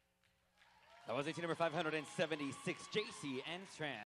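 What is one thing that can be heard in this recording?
An audience cheers and whoops loudly.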